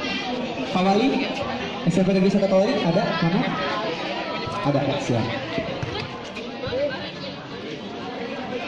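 A crowd of young women and girls chatters nearby outdoors.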